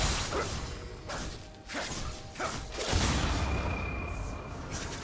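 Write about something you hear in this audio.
Magic blasts and weapon hits burst again and again in a busy fight.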